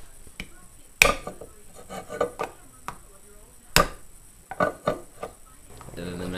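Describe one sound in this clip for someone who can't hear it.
A knife blade taps and pierces a metal jar lid.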